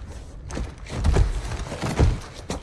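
Heavy boots step on a hard floor close by.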